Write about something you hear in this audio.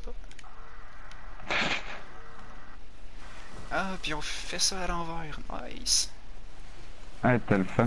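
Skis hiss and scrape as they carve through snow.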